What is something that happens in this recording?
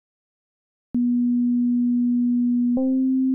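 A synthesizer plays a steady, low electronic tone.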